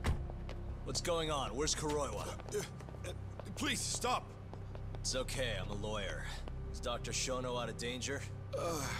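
A young man asks questions with urgency, close by.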